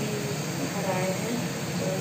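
Milk pours into a pot.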